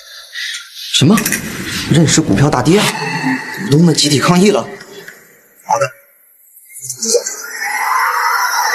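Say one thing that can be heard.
A man speaks on a phone, calmly and close by.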